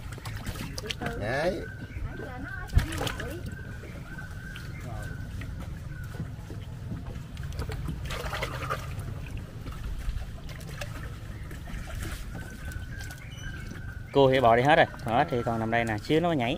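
Wet frogs shuffle and slap against wood.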